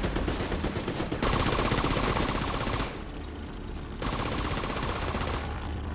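Footsteps run quickly over hard pavement.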